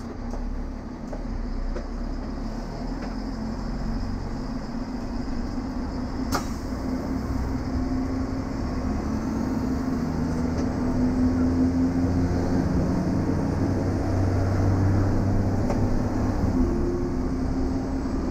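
A diesel railcar pulls away, its engine working harder as it gathers speed.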